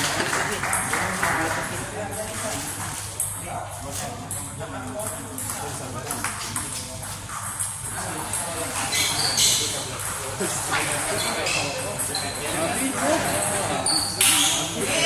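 A ping-pong ball clicks back and forth between paddles and the table in a quick rally.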